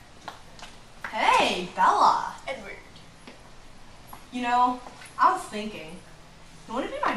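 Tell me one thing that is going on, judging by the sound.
A teenage girl speaks casually nearby.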